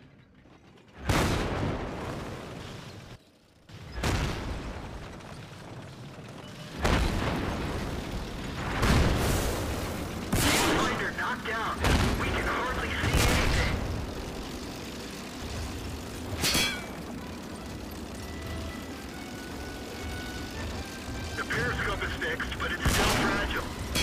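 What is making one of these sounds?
Heavy cannon shots boom loudly, several times, each followed by a rolling echo.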